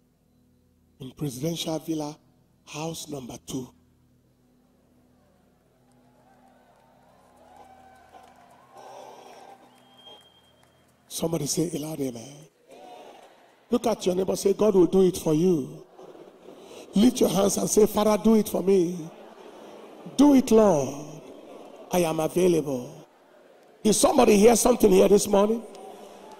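A man preaches loudly and with animation into a microphone in a large echoing hall.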